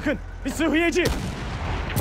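An explosion bursts nearby.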